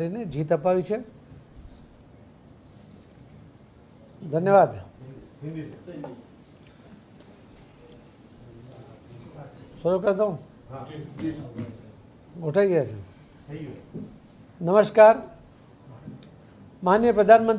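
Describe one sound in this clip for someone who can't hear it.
A middle-aged man speaks into microphones in short, measured phrases with pauses.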